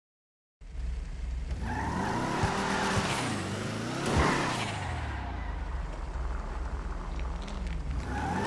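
A car engine revs and roars, rising and falling in pitch.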